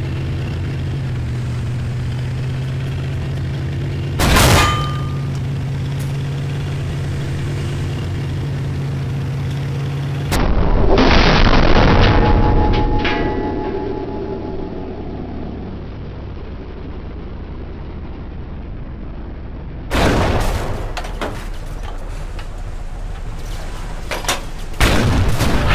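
A tank engine rumbles steadily.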